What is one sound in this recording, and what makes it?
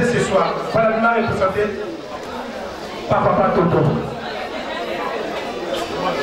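People chatter nearby in an indoor crowd.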